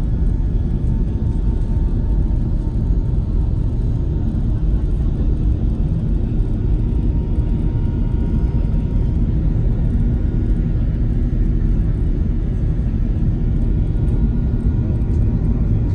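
Jet engines roar steadily with a deep, constant rumble heard from inside an airliner cabin.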